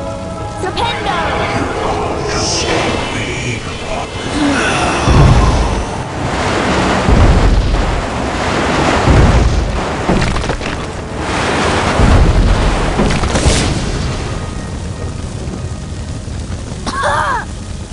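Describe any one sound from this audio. Magic spells crackle and whoosh as they are cast.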